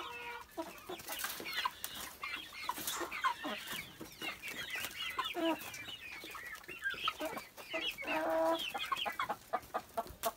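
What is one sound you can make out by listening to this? Chickens scratch and peck at dry dirt.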